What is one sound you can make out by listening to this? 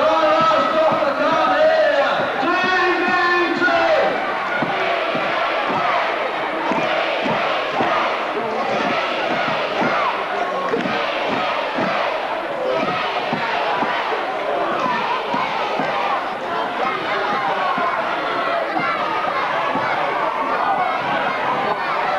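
A crowd cheers and shouts throughout.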